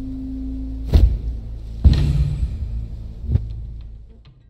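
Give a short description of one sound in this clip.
A loud whooshing chime sounds as a choice is confirmed.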